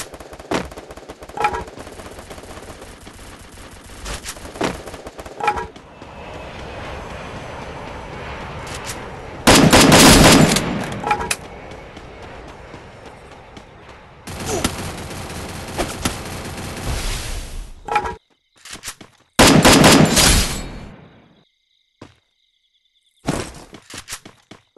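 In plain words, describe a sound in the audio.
Footsteps run quickly over hard ground in a game.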